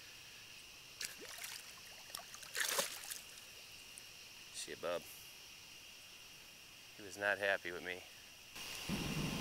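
Water splashes and sloshes around a hand.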